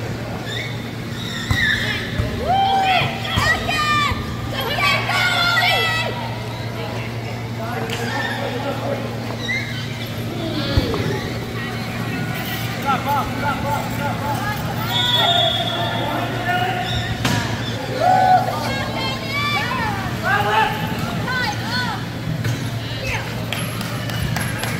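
Men and women call out and shout across a large echoing hall.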